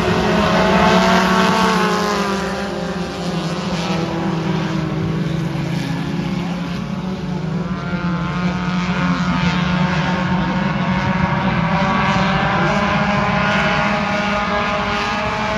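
Several race car engines roar loudly, revving up and down.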